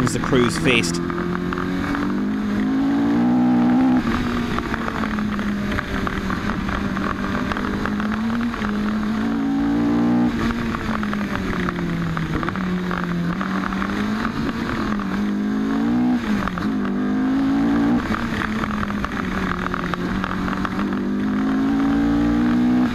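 A car engine hums, rising in pitch and dropping with each gear change.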